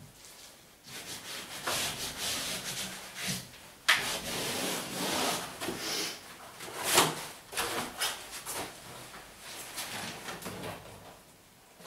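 Wallpaper rustles and crinkles as it is smoothed against a wall.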